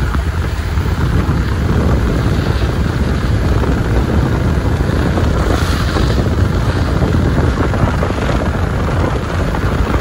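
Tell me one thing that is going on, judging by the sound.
Small waves wash onto the shore nearby.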